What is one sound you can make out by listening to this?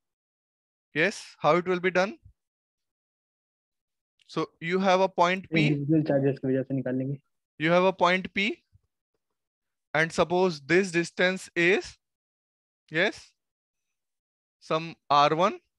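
A young man speaks calmly through a close microphone.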